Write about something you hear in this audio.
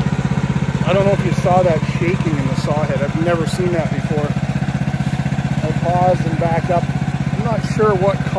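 A man speaks calmly and close up.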